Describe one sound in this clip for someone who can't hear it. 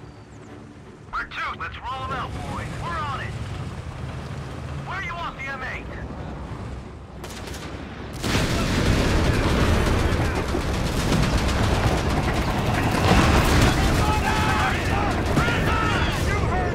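Tank engines rumble low and steadily.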